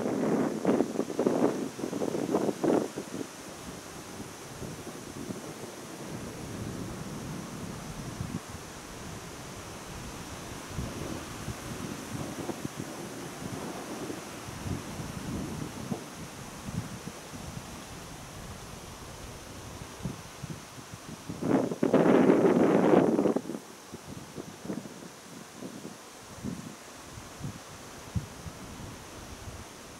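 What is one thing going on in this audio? Wind blows and gusts outdoors.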